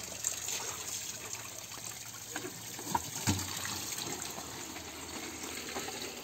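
Water pours from a spout into a plastic bottle.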